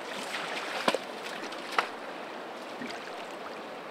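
Water splashes as a fish is released.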